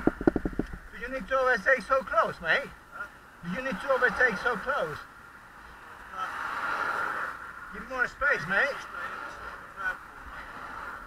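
A middle-aged man speaks from inside a car, heard nearby through an open window.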